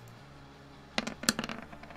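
Dice clatter and roll on a hard surface.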